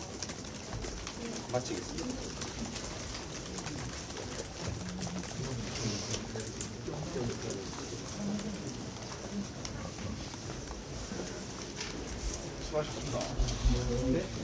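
Several men and women chatter nearby.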